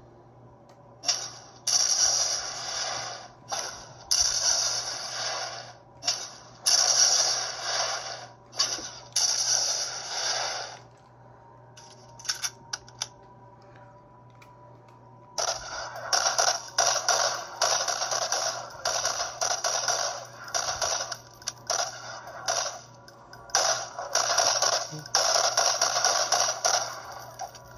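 Game gunfire rattles from a small loudspeaker in loud bursts.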